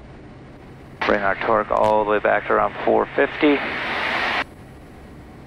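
A man speaks calmly through a headset radio.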